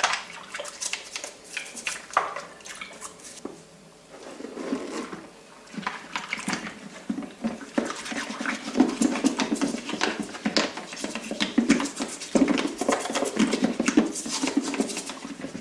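Hands splash and slosh in soapy water.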